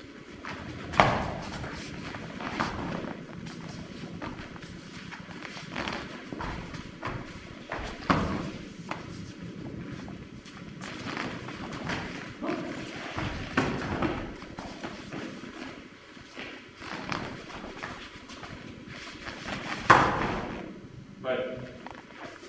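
Bodies thump and slap onto a mat as a man is thrown again and again.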